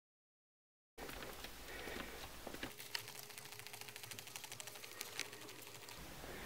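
A gear stick rattles as it is wiggled.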